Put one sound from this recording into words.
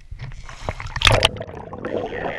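A man plunges under water with a loud splash.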